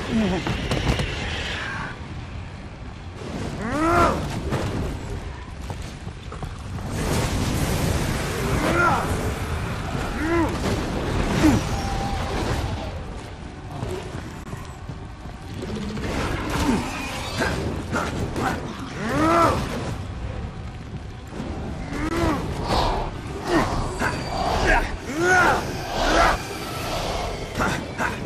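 A large beast growls and roars again and again.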